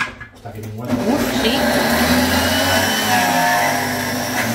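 A food processor whirs loudly.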